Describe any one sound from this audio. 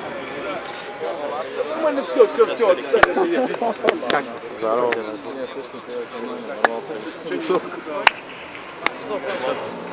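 Young men talk and laugh together nearby.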